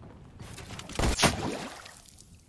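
A gunshot cracks once in a video game.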